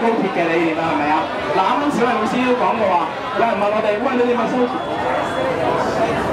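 A young man speaks forcefully into a microphone, amplified through a loudspeaker.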